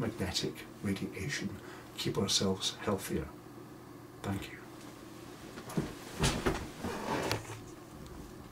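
An older man speaks calmly and close up.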